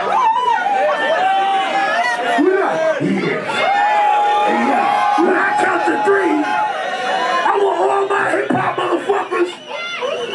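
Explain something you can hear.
Music plays loudly over loudspeakers.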